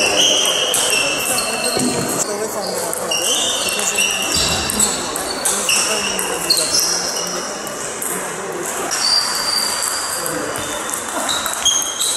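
Table tennis balls click rapidly against paddles and tables in an echoing hall.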